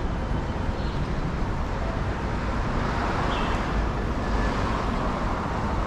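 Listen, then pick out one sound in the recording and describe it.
Wind buffets outdoors with a steady low rumble.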